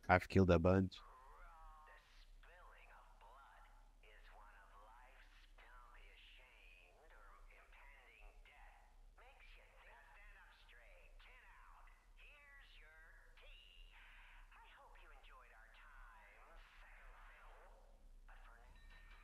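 A man speaks theatrically over a telephone line.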